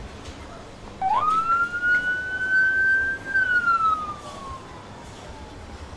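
A siren wails briefly, then slides down and fades.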